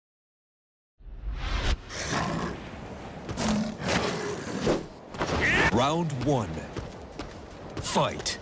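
Fighting game sound effects whoosh and thud.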